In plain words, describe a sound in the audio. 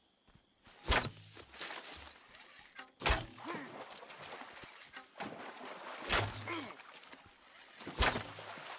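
A bowstring snaps as arrows are loosed, one after another.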